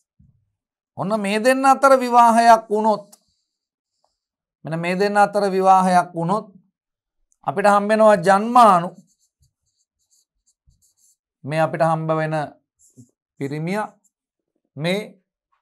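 A man speaks calmly and clearly into a microphone, in short phrases with pauses.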